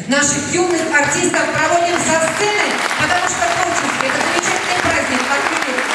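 A woman speaks through a microphone and loudspeakers in a large hall.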